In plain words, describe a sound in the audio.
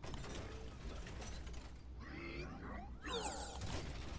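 A robot's machinery whirs and clanks as it changes shape.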